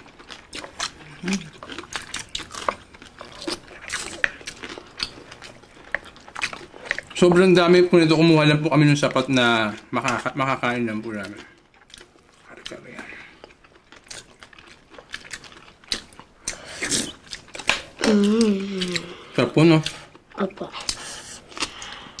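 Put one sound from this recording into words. People chew and smack their lips loudly close to a microphone.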